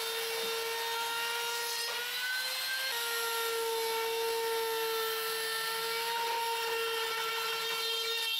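An electric router whines steadily as it cuts wood.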